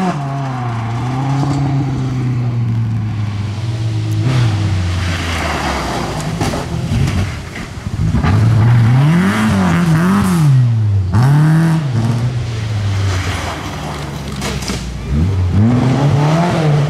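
A rally car engine roars past at speed.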